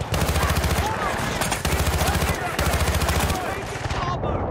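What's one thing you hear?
A rifle fires rapid bursts close by.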